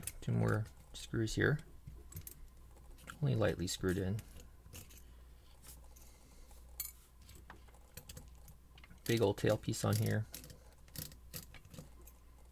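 A small metal tool clicks against a metal part.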